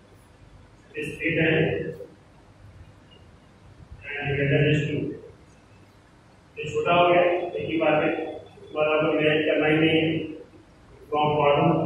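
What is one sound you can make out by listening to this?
A man speaks calmly in bursts, close by.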